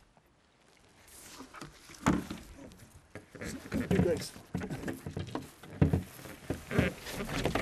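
A hand rubs and presses on a board's deck pad.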